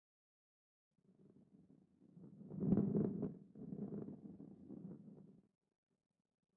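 A heavy ball rolls along with a low rumble.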